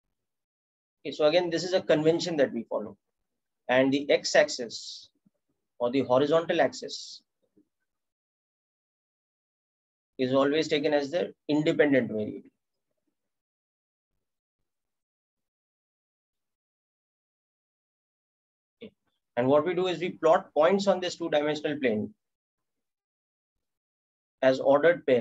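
A young man speaks calmly into a microphone, explaining in short phrases with pauses.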